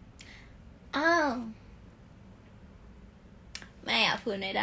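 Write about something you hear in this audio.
A young woman speaks close to a phone microphone, with pitch rising and falling.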